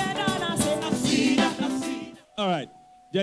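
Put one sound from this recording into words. A woman sings loudly into a microphone.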